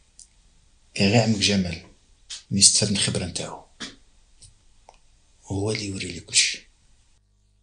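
A middle-aged man speaks in a low, calm voice.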